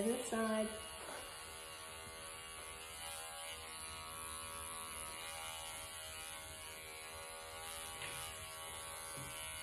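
Electric clippers buzz steadily close by.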